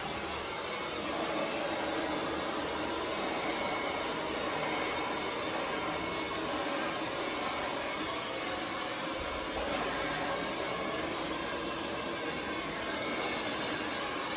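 A hair dryer blows with a steady whirring roar.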